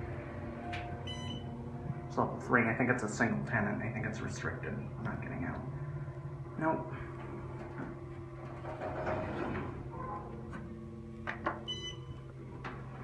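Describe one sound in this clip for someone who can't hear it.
An elevator chime dings.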